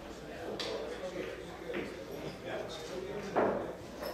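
Pool balls click against each other on a table.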